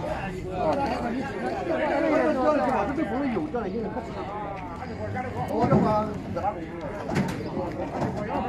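Men chat nearby outdoors.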